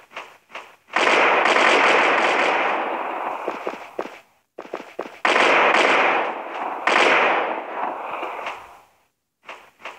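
Thunder cracks loudly and rumbles away.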